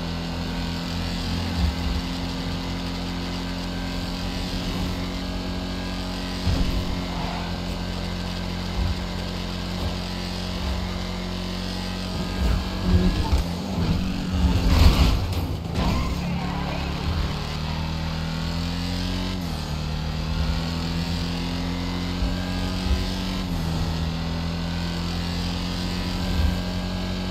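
A car engine roars steadily at high speed, shifting pitch as it changes gear.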